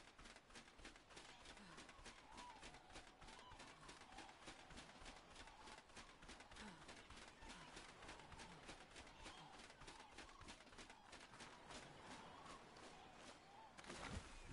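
Footsteps run on sand.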